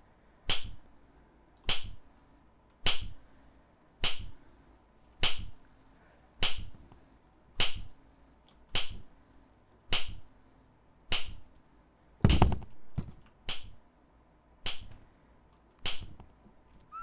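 Footsteps thud at a slow, even pace.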